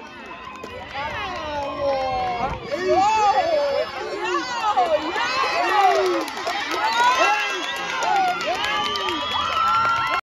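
A crowd of young people cheers and shouts loudly outdoors.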